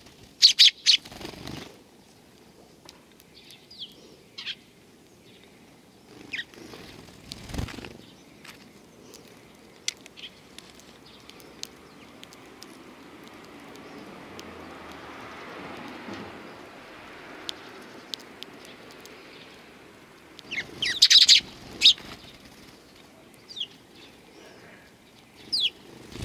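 Sparrows chirp close by.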